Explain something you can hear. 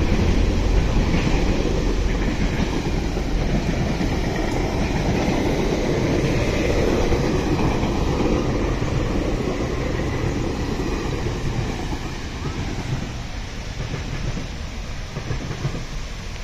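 A passenger train rumbles past close by and slowly fades into the distance.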